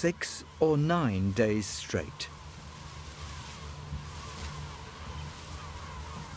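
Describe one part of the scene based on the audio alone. Wind rustles through tall grass.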